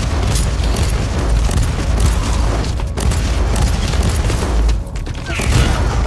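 Heavy explosions boom with a deep rumble.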